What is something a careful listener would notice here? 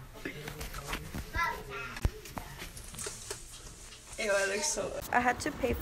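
Young women talk and laugh close by, with animation.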